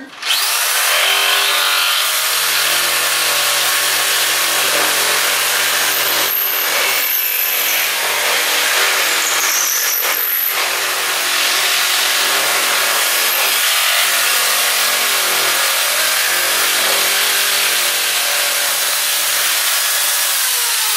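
An electric jigsaw buzzes steadily as it cuts through a thin board.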